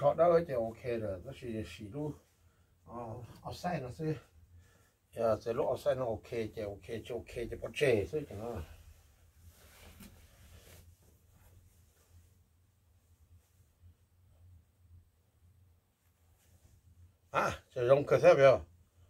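A middle-aged man talks calmly and close by.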